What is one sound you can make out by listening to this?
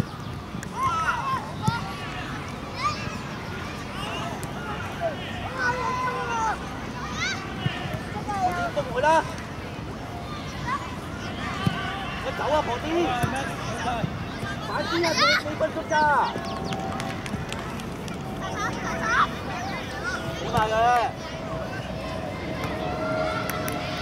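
Young children shout and call out across an open outdoor field.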